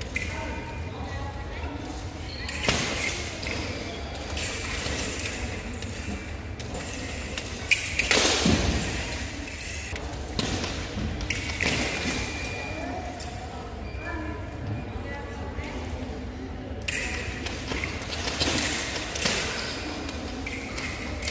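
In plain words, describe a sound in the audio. Fencing blades clash and scrape.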